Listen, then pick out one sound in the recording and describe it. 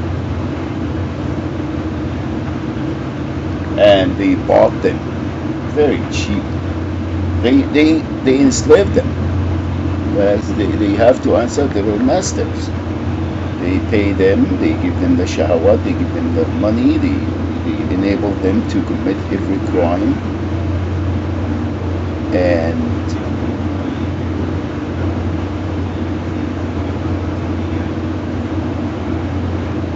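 A low engine drone hums steadily.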